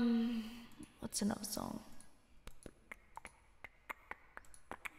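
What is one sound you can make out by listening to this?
A young woman speaks briefly and quietly, close to a microphone.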